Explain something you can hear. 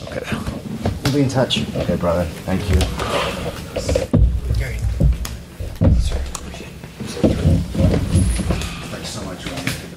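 Men scuffle and thump against a table.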